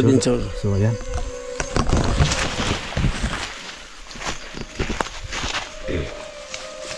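Dry leaves and undergrowth rustle nearby.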